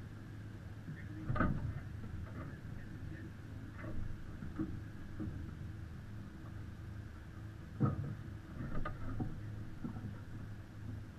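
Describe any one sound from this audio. Men talk calmly on board a boat.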